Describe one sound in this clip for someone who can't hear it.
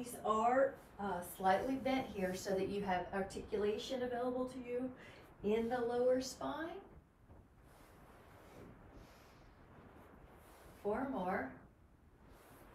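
A young woman speaks calmly and clearly nearby.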